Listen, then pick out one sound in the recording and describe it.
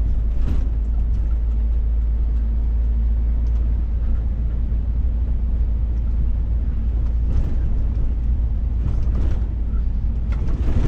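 A vehicle engine rumbles steadily from inside the cab.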